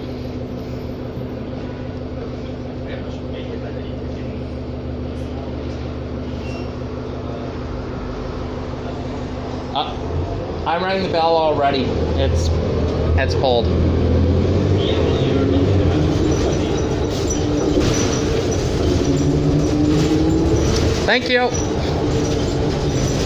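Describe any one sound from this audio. A bus engine hums steadily, growing louder as the bus pulls away.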